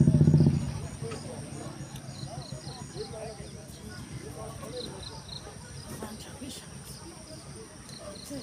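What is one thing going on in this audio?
Women chatter softly at a distance outdoors.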